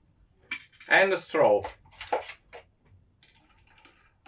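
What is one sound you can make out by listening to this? A metal straw clinks against a glass.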